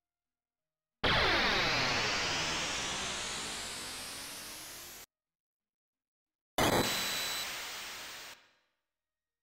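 A shimmering magical sound effect swells and slowly fades.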